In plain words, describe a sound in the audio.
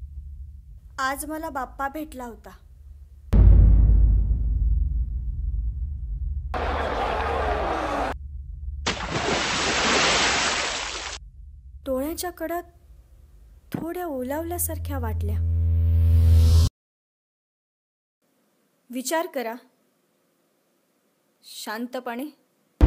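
A young woman speaks earnestly, close to the microphone.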